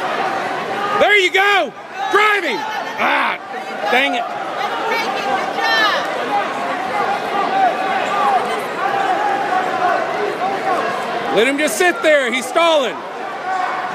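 Spectators shout and cheer loudly.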